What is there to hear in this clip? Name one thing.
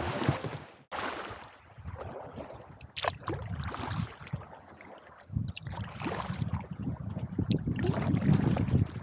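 Water laps gently against the side of a kayak.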